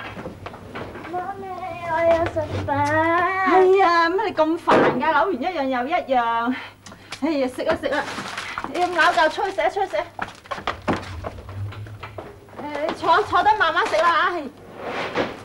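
A woman speaks with animation nearby.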